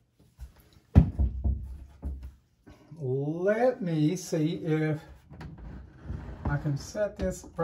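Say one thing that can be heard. Knocks and clicks sound as a man handles an opened device.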